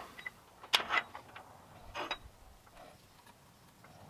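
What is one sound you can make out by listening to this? A pencil scratches on metal.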